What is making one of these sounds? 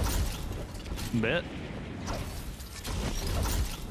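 A glider snaps open with a flutter.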